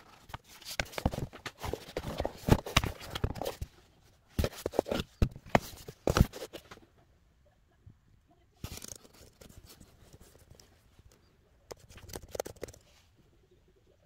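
Hands handle a laptop with soft knocks and rustles.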